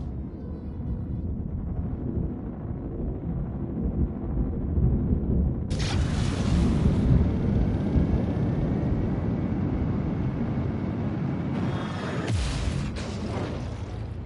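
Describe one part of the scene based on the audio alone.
A spaceship engine rumbles deeply and steadily.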